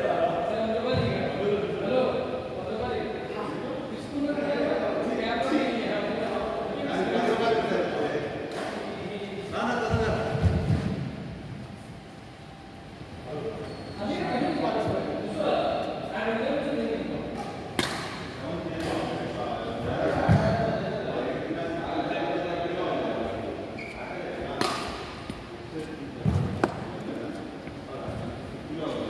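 A man talks calmly in an echoing hall.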